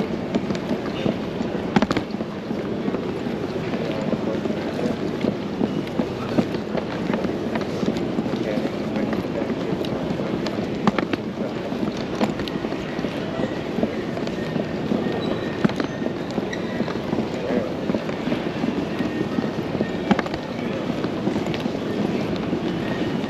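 Footsteps click on a hard floor nearby.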